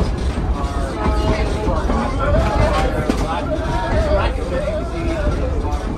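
Passengers chatter nearby and throughout the car.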